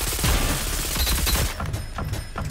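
Gunfire bursts rapidly.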